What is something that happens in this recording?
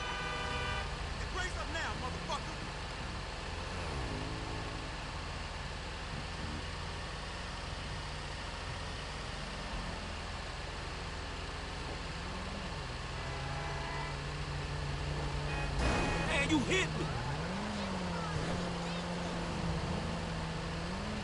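A car engine hums steadily and rises and falls in pitch as it drives.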